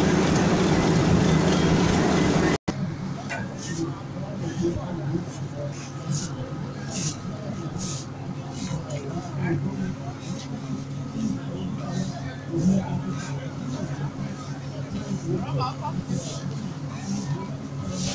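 People chatter nearby outdoors.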